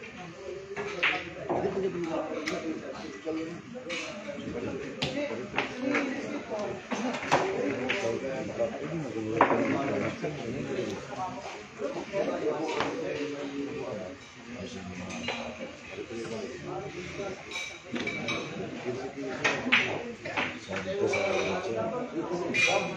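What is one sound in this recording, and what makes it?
Billiard balls click together sharply.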